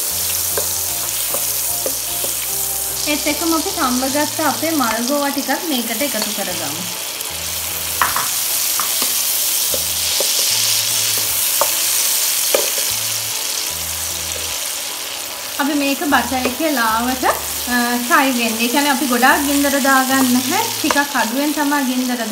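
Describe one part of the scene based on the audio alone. Oil sizzles and crackles steadily in a hot pan.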